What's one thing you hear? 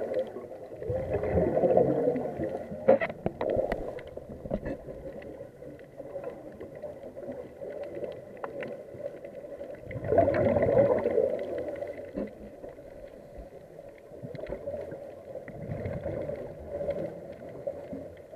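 Air bubbles from a diver's breathing gurgle and rumble underwater in bursts.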